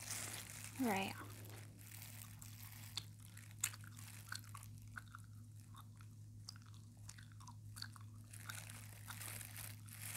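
Plastic crinkles and rustles close by.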